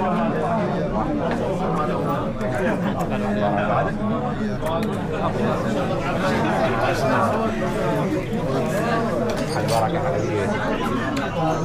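A crowd of men talk and greet each other all around, close by, in a busy hubbub.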